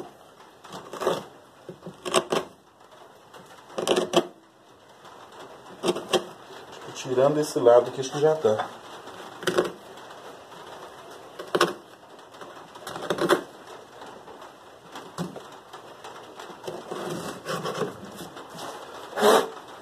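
A chisel is knocked into wood in sharp, spaced blows.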